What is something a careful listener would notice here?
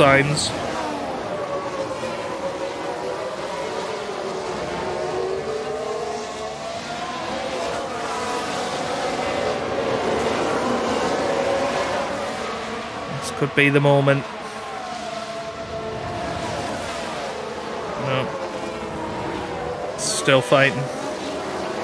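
Racing car engines whine steadily as the cars speed by, their pitch rising and falling.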